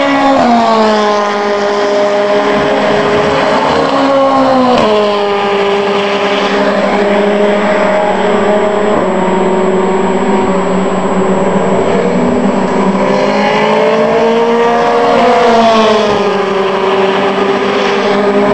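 Racing car engines scream loudly as cars speed past, with the pitch dropping at gear changes.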